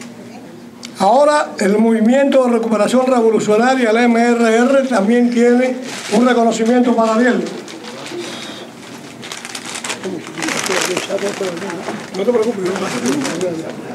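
An older man speaks calmly into a microphone through a loudspeaker.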